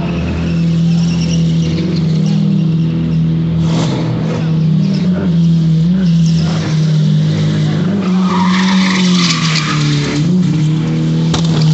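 Tyres squeal and spin on asphalt.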